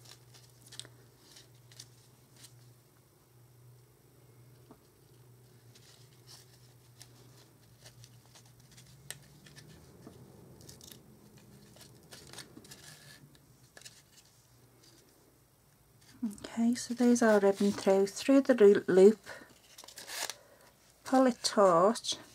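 Folded paper crinkles and rustles in hands.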